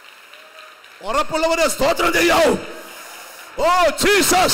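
A man speaks loudly and with fervour into a microphone, heard through loudspeakers in a large hall.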